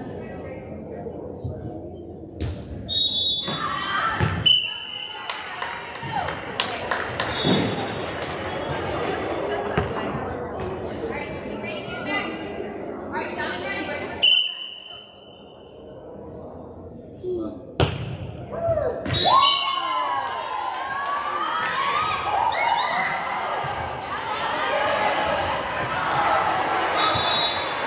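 Young girls chatter and call out across a large echoing gym.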